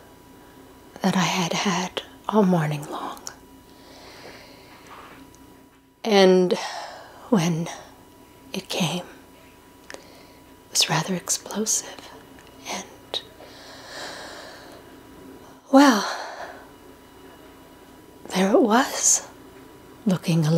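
A woman speaks quietly and hesitantly, close by, with pauses.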